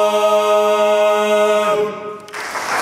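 A men's choir sings a sustained chord in harmony in a large echoing hall.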